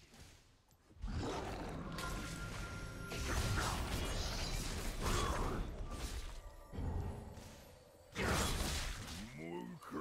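Video game spell blasts and weapon strikes clash in a busy fight.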